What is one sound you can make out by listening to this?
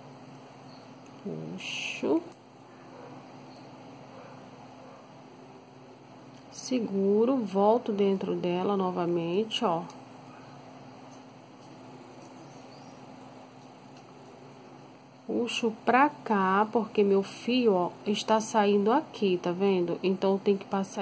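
Plastic beads click softly against each other as they are handled.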